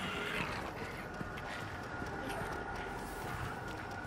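Footsteps scuff slowly on wet pavement.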